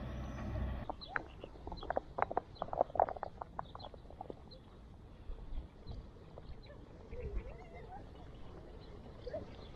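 Bicycle tyres rumble over paving stones.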